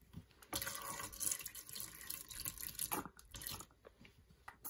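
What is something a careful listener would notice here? Thick sauce pours and sizzles in a hot frying pan.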